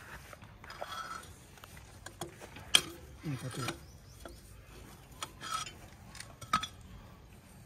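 A metal bar clanks and scrapes against a steel track.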